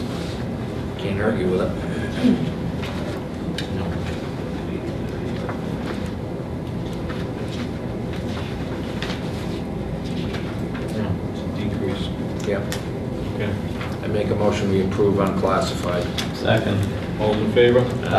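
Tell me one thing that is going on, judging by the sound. A man speaks calmly across a room.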